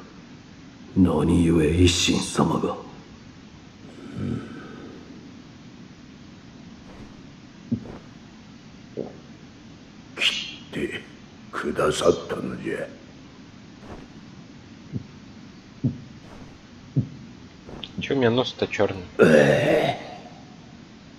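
A man speaks in a low, strained voice, close by.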